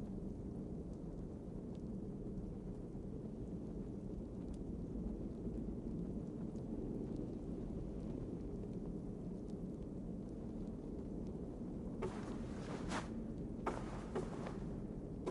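A low, steady rumble hums throughout.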